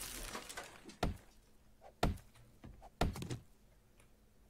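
An axe chops into wood with a few dull knocks.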